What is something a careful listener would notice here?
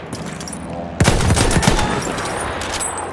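A heavy artillery gun fires with a loud, booming blast that rumbles away.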